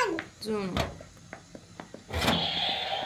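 A metal stove door clanks shut.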